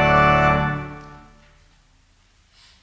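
A choir holds a final sung chord that rings out and fades in a large echoing hall.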